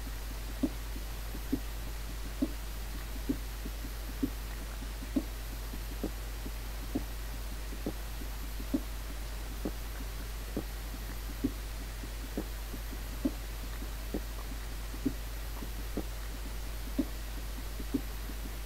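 A pickaxe chips at stone with regular dull knocks.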